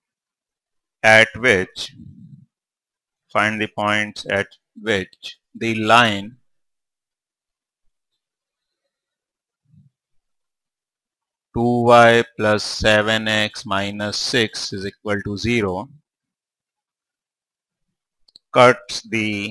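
A man explains calmly through a clip-on microphone, in short bursts with long pauses.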